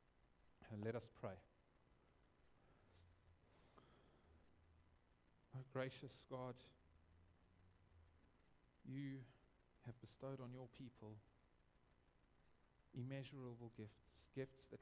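A man speaks slowly and calmly, with long pauses, in an echoing room.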